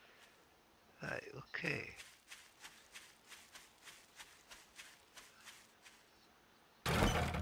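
Footsteps crunch through grass.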